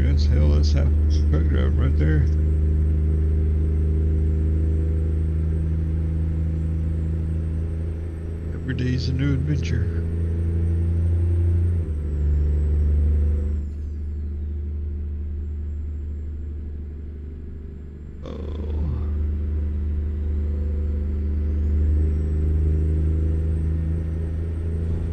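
A truck engine drones low and steady while driving.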